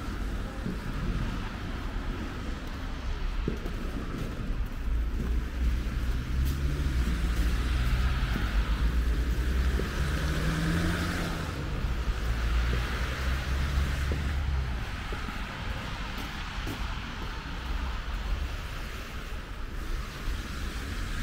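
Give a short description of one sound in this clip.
Traffic rumbles along a nearby street outdoors.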